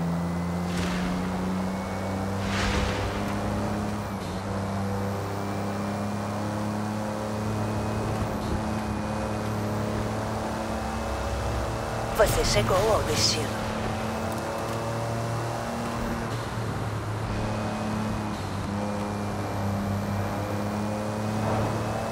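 A sports car engine roars steadily at high speed, its pitch shifting with gear changes.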